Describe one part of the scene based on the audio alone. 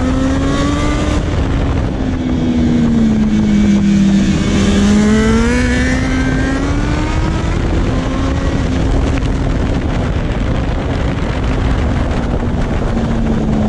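Wind roars past a rider at speed.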